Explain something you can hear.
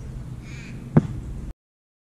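A football is kicked with a hard thud.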